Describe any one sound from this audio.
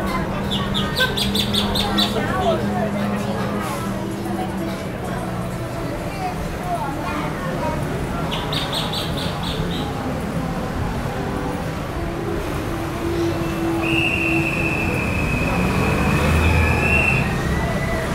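A crowd of men and women chatters softly outdoors.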